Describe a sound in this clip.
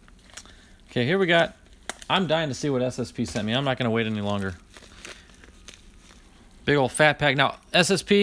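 A plastic mailer crinkles as hands handle it.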